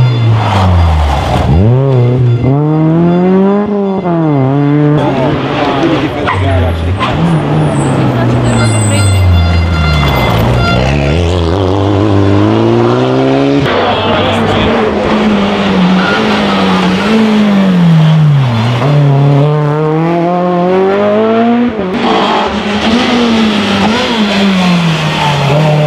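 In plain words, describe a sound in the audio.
Rally car engines rev hard and roar past, one after another.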